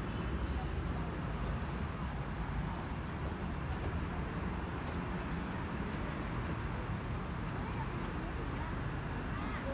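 Footsteps scuff softly on a paved path.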